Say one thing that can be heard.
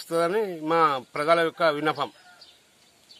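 A middle-aged man speaks loudly and with emphasis into microphones, close by.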